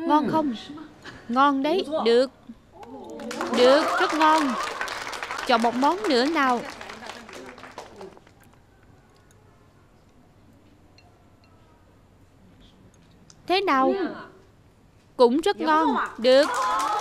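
A middle-aged woman speaks cheerfully, close by.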